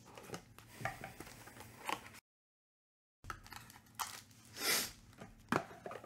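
A cardboard box lid slides off with a light scrape and rustle.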